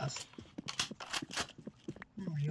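Rapid gunshots crack from a game.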